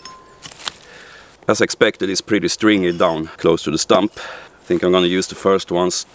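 A slab of wood cracks and splits off a log.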